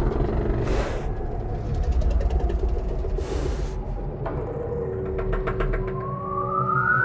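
A dragon growls with a deep, rumbling roar.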